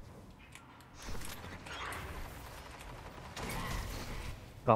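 A gun fires in short bursts.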